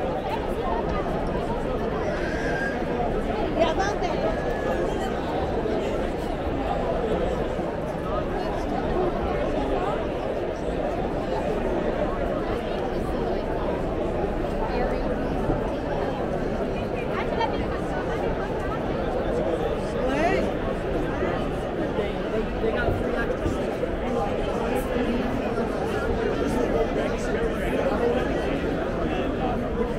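A large crowd chatters and murmurs all around, outdoors.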